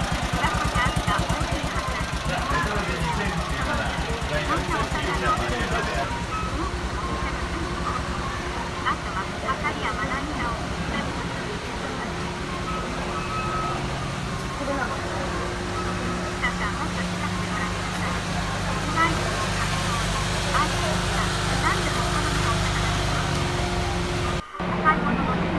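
A small car engine idles with a low, steady rumble.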